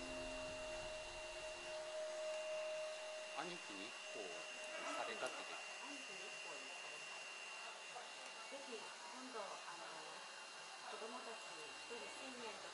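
A hair dryer blows steadily close by.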